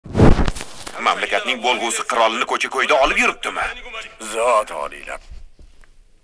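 An older man speaks forcefully and with emotion, close by.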